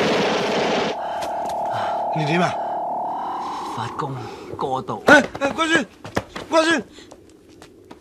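A young man cries out in a wailing voice.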